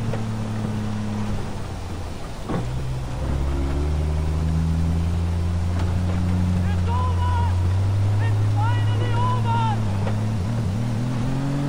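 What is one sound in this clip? A vehicle engine drones steadily, growing louder as it picks up speed.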